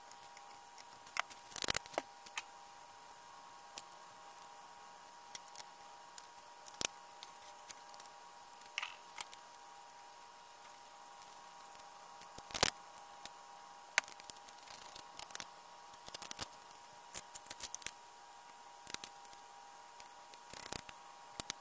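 Metal parts of a power tool clink and knock as they are handled.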